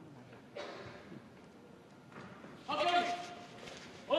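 Two heavy bodies slap together as wrestlers collide.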